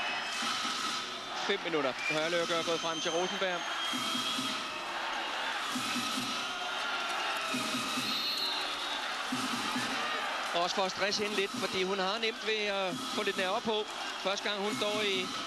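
A large crowd roars and chants in an echoing arena.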